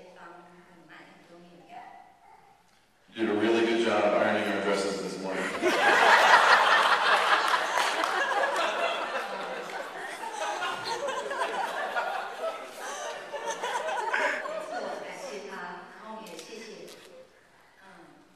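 A young woman speaks through a microphone in a cheerful voice.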